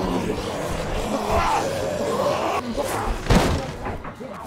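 Hands bang against a glass door.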